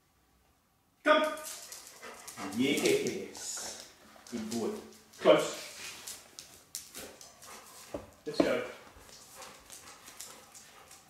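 A dog whines and yelps excitedly close by.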